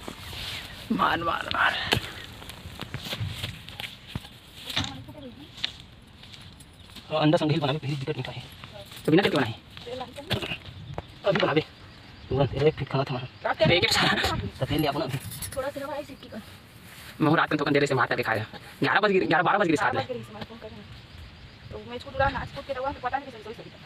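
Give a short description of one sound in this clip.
A pickaxe chops into soft soil with dull thuds.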